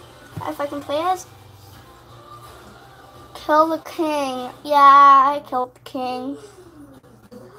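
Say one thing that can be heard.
A young girl sings and squeals in a high voice close by.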